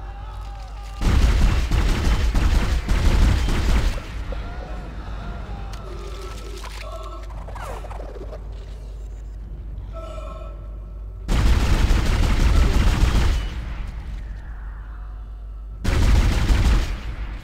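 A futuristic weapon fires in loud, roaring bursts.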